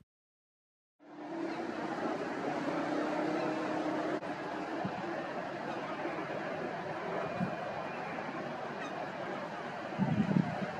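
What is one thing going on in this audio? Water rushes and splashes against a fast-moving boat's hull.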